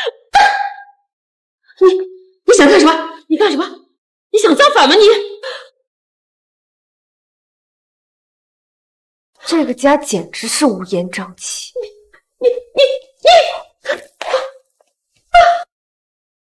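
A middle-aged woman shouts angrily up close.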